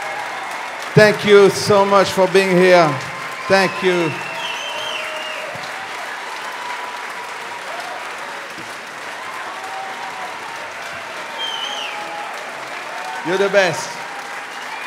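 A crowd cheers and shouts loudly in bursts.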